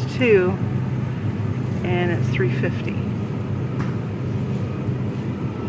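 A freezer case hums steadily nearby.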